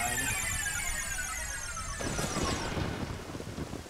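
A shimmering magic chime rings out and fades away.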